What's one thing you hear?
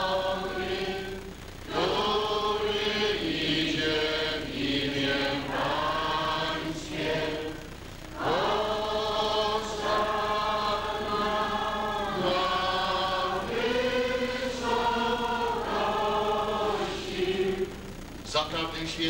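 A middle-aged man chants slowly in a large echoing hall.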